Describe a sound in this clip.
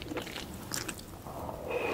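A woman slurps noodles close to a microphone.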